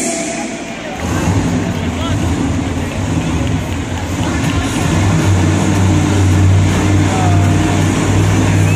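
Monster truck engines rumble and rev loudly in a large echoing arena.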